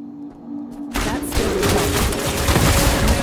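Fire roars and bursts around a warrior.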